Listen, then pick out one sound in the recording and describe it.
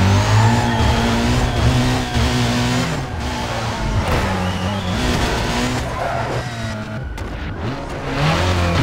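A racing car engine roars loudly, its pitch rising and dropping as it shifts gears.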